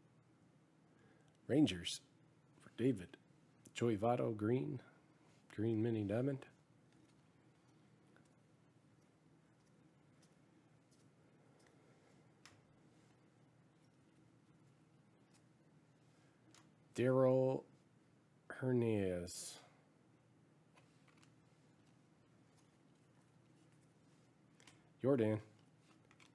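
Glossy trading cards slide and flick softly between hands.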